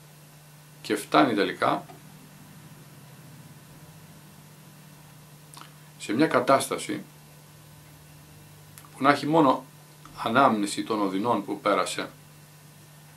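An older man speaks calmly and close by, in short phrases with pauses.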